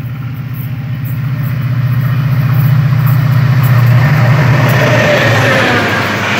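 Train wheels clatter on the rails.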